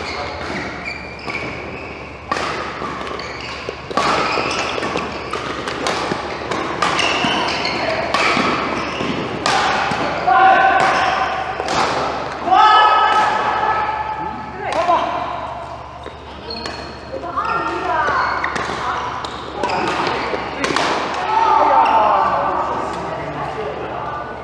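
Young adult players call out to each other across the court.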